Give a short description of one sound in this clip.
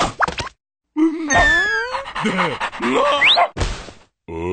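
A cartoon dog laughs and yelps excitedly.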